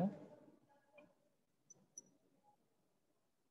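A glass rod clinks faintly against a glass beaker.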